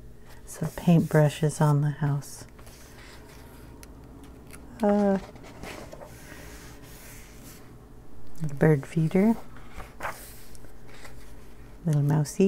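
Paper pages rustle and flip as a book is leafed through.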